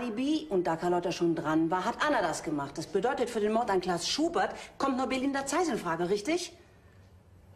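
A middle-aged woman speaks intently, close by.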